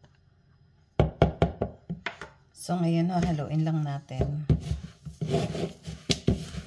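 A spatula stirs and scrapes through damp oats in a plastic bowl.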